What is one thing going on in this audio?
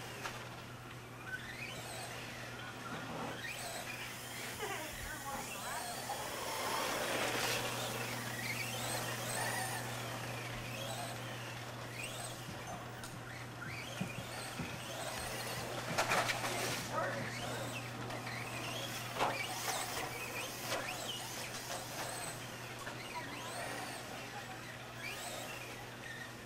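The wheels of a toy car scrape and crunch on dirt.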